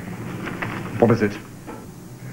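A man speaks in a low voice into a phone.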